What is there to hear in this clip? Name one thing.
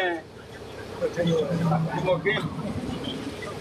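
A man talks nearby with animation.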